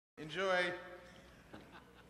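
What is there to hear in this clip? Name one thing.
A man speaks cheerfully into a microphone.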